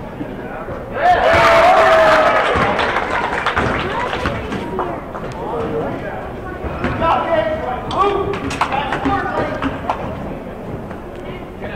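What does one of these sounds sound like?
Spectators cheer and shout loudly in an echoing gym.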